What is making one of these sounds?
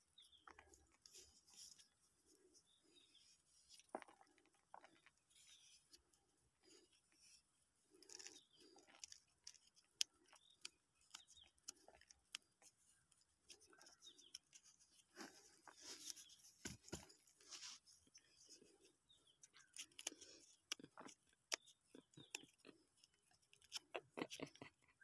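A stick scrapes and scratches soil inside a small metal pot.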